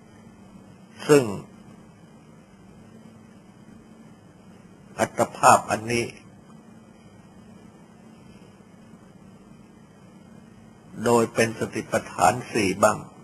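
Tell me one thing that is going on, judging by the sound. An elderly man speaks calmly in short phrases with long pauses.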